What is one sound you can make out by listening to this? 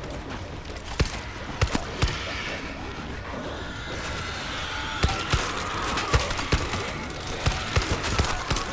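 A pistol fires in sharp shots.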